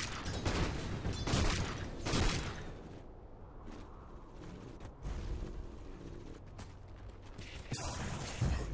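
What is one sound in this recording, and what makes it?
Magic spells crackle and blast in a fight between game characters.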